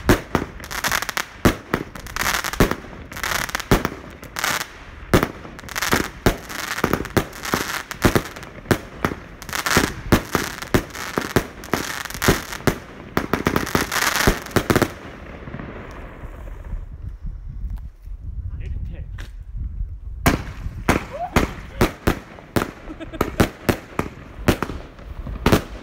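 Fireworks burst with rapid crackling pops.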